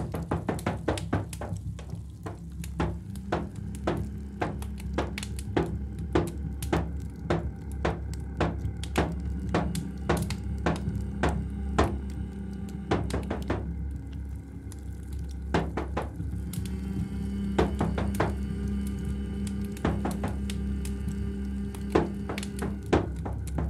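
A hand drum is struck in a quick, steady rhythm.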